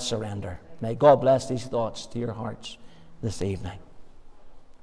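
An elderly man speaks calmly through a microphone in a large room.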